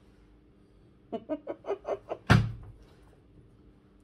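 Hands clap against each other.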